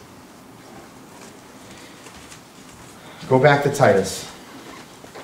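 A man speaks through a microphone, his voice echoing in a large room.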